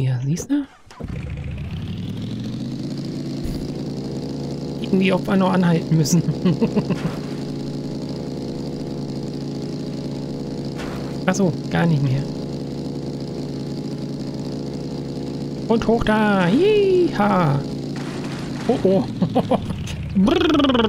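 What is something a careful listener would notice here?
A motorcycle engine runs with a steady drone.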